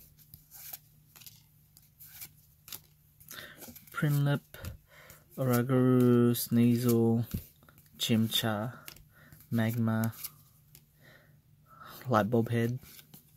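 Playing cards slide and flick against one another.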